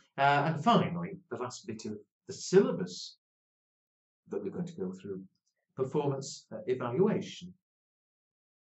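An elderly man speaks calmly into a close microphone, as if lecturing.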